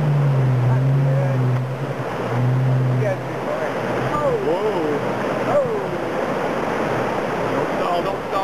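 A river rushes and splashes over rocks.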